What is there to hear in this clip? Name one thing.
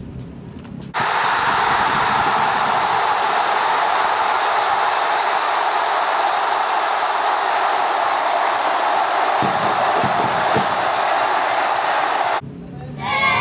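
A large crowd cheers and chants loudly.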